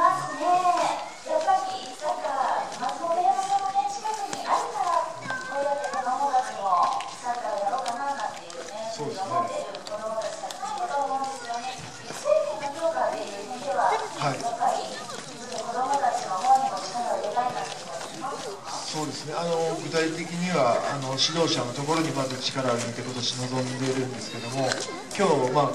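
A man speaks calmly through a microphone and loudspeaker outdoors.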